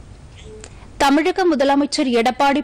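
A woman reads out calmly and clearly through a microphone.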